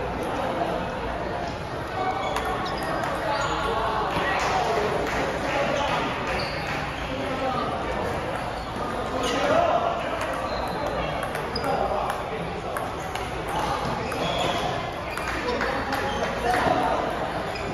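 Table tennis balls click rapidly against paddles and tables.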